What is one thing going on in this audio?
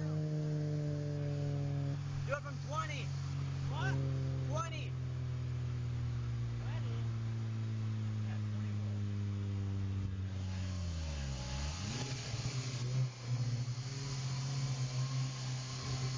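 A four-cylinder car engine drones while cruising alongside.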